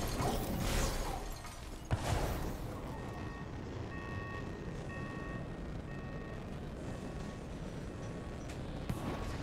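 Jet thrusters roar and whoosh in short bursts.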